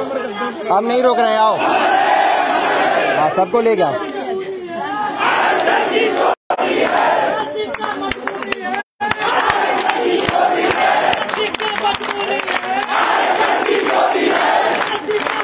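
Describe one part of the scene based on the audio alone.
A large crowd chants slogans loudly in unison outdoors.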